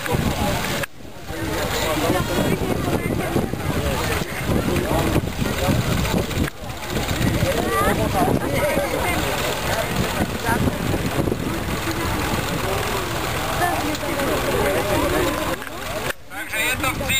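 A small homemade tractor engine labours, towing a trailer over grass.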